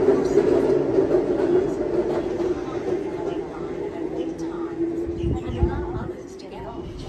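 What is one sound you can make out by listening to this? A train pulls away with a low rumbling hum.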